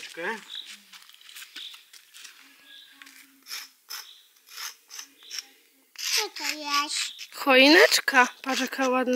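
A young girl talks and squeals in a high voice.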